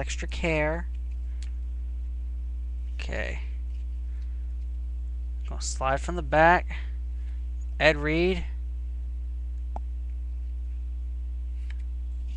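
Paper cards rustle softly as hands flick through them.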